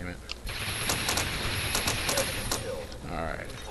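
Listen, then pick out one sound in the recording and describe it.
An energy gun fires with a crackling, hissing burst.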